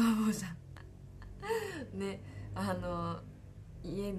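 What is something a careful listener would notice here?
A young woman laughs lightly.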